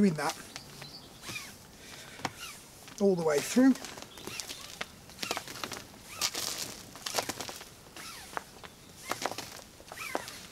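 A rope swishes and rustles as it is coiled.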